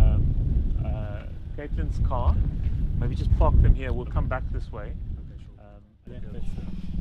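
A man talks outdoors in wind.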